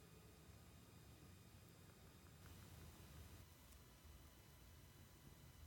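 Water sloshes gently.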